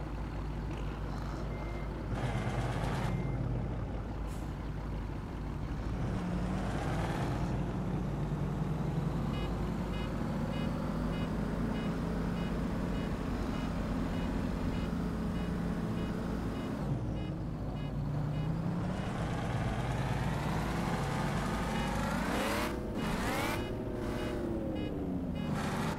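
A truck engine rumbles steadily, rising and falling in pitch as it revs.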